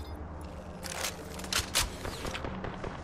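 A gun clacks and rattles as it is picked up.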